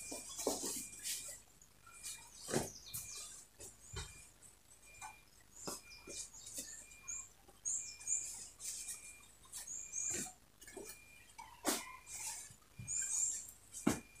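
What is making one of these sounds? Cloth rustles and swishes as hands fold and smooth it.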